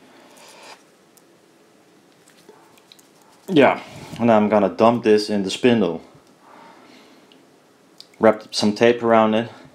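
A metal bolt scrapes and clicks as it is twisted into a fitting.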